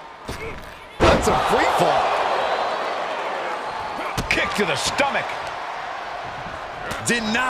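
A crowd cheers loudly in a large arena.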